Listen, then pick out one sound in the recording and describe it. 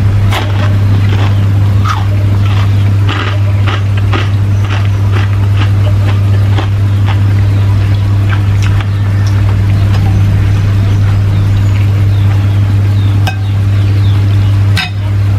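A metal spoon scrapes and clinks against a plate.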